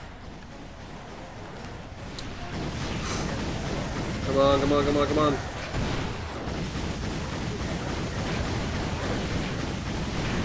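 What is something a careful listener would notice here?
Gunfire and explosions crackle rapidly in a video game.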